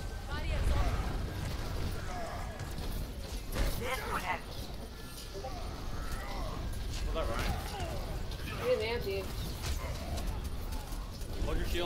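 Energy blasts whoosh and zap.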